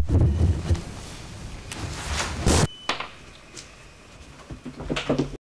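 People shuffle and step about.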